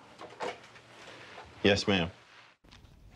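A man speaks briefly into a phone, close by.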